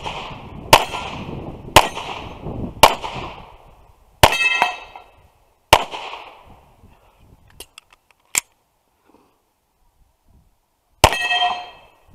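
A pistol fires loud shots that echo across open ground.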